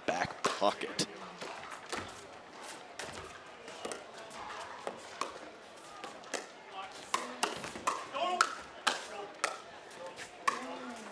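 Paddles smack a plastic ball back and forth in quick, sharp pops.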